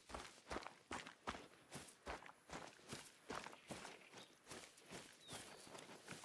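Footsteps rustle steadily through tall grass.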